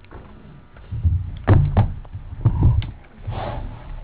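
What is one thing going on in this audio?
A chair bumps and scrapes as a man sits down.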